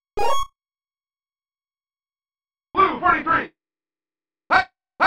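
A video game plays short electronic sound effects.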